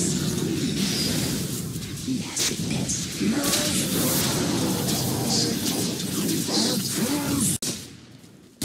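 Fiery explosions crackle and burst in quick succession.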